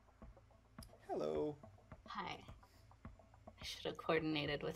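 A young woman talks over an online call.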